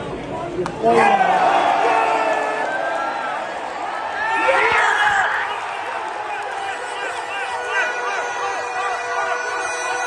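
Spectators sing and chant loudly nearby.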